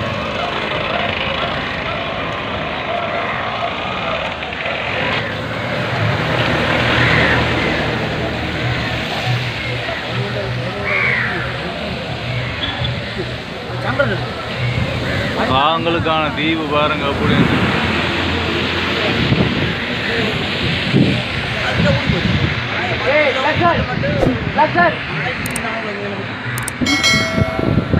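Crows caw loudly and repeatedly all around.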